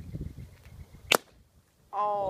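A metal can is struck with a sharp crack.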